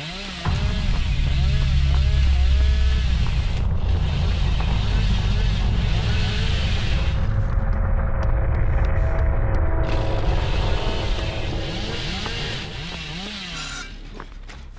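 Footsteps run over dry ground.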